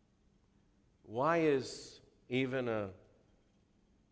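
A middle-aged man speaks calmly into a microphone over a loudspeaker.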